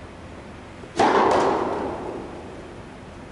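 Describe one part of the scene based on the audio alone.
A racket strikes a tennis ball hard, ringing through a large echoing hall.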